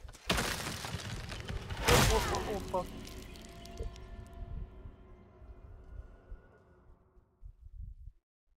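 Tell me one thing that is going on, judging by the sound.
A heavy crash rings out and slowly fades.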